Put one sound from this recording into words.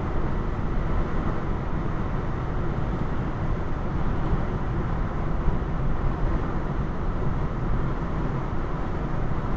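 Tyres roll steadily on a wet road inside a moving car.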